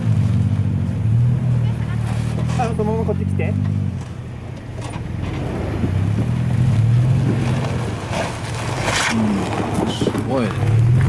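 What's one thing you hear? An off-road vehicle's engine rumbles and revs as it climbs slowly over rock.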